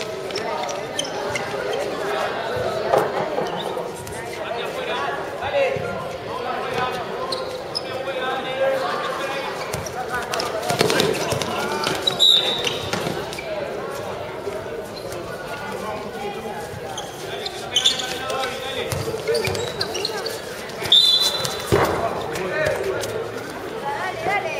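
A crowd of young men shout and call out.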